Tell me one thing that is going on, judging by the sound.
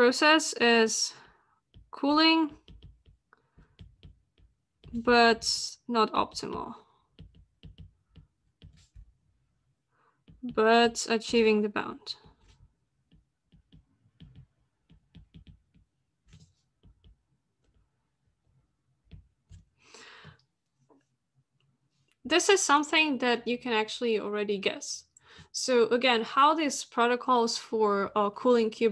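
A woman speaks calmly over an online call, pausing often.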